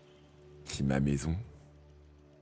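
A young man speaks briefly and with animation, close to a microphone.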